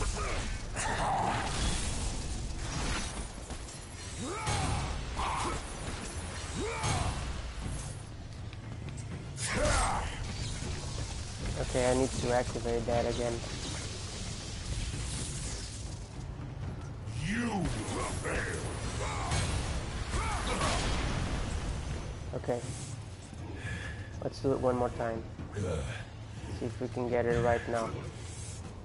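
Metal blades slash and strike hard against stone, again and again.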